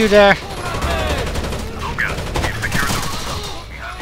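Gunfire cracks in short bursts.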